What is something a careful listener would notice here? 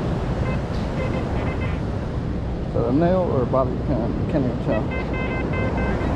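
A metal detector beeps in short, repeated electronic tones.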